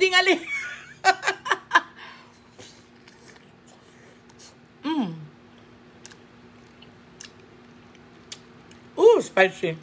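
Crunchy food crackles and smacks as a woman chews.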